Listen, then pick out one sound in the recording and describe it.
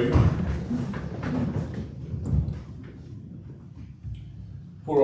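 An elderly man speaks calmly into a microphone in a room with some echo.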